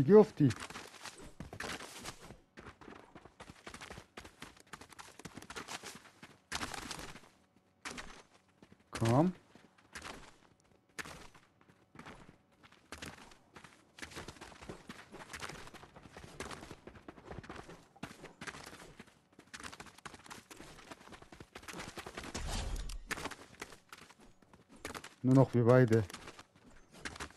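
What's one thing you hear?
Quick footsteps patter on dry ground.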